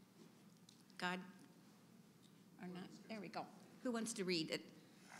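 An elderly woman speaks calmly and gently nearby.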